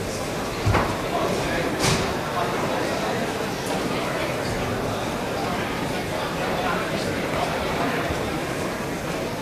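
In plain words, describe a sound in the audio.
A large crowd murmurs and chatters all around.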